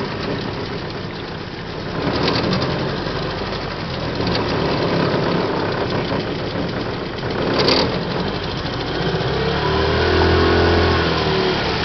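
A small motor boat hums steadily across calm water.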